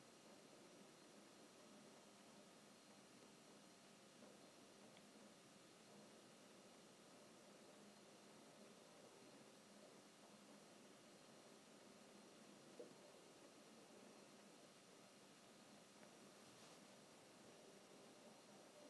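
Fabric rustles as hands handle a cushion cover.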